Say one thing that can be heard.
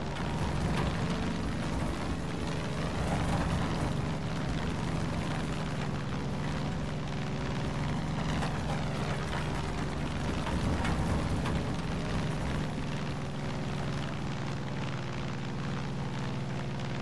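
Wind rushes past a plane's cockpit.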